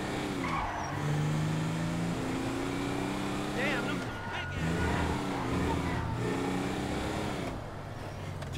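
A car engine revs and changes pitch as the car speeds along.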